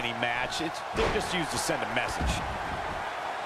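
Heavy body slams thud on a wrestling mat.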